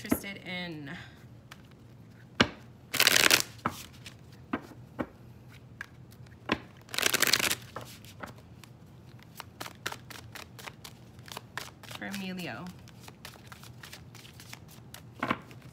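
Playing cards tap and click as they are handled.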